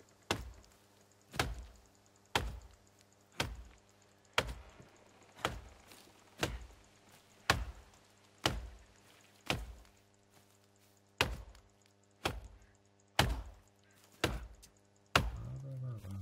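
An axe chops into a tree trunk with sharp, regular thuds.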